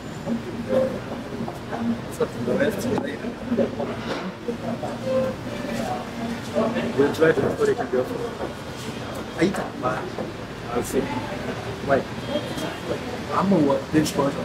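A man slurps a drink.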